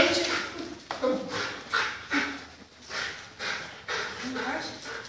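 A dog barks repeatedly and excitedly nearby.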